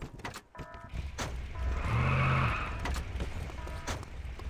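A car engine rumbles and revs up close.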